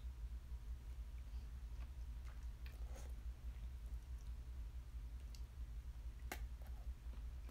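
A young woman slurps noodles up close.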